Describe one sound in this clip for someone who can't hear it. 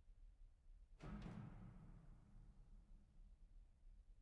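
A single chord is struck on a keyboard instrument and slowly rings away.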